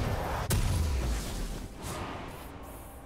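Magic spell effects burst and crackle in a video game battle.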